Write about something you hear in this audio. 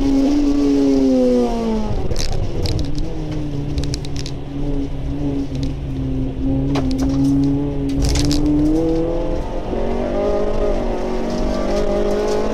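A car engine hums steadily, rising and falling in pitch.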